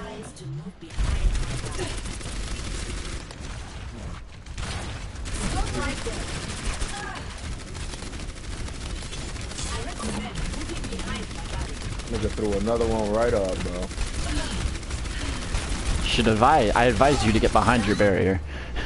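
Energy weapons fire in rapid bursts with buzzing zaps.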